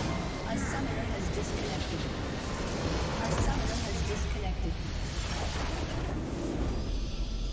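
A large crystal structure explodes with a loud crackling roar.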